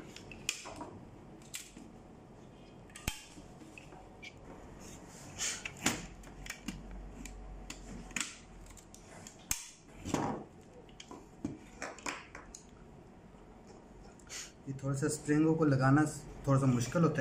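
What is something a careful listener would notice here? Plastic parts click and knock as hands handle a small machine part.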